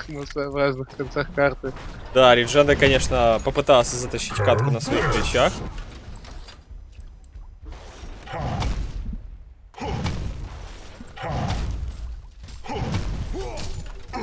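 Fighting sounds and spell effects crackle and burst in a video game battle.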